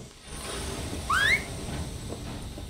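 A train whistle blows briefly with a rising pitch.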